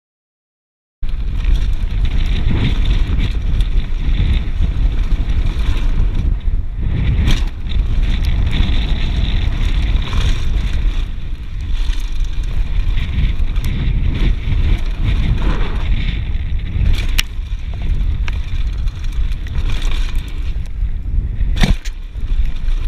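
Bike tyres crunch and rumble over a rough dirt trail.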